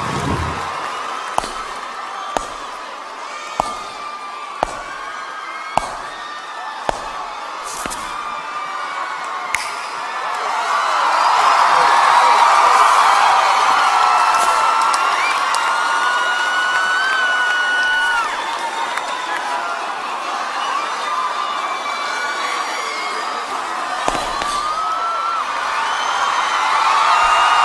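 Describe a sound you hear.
A large crowd screams and cheers loudly.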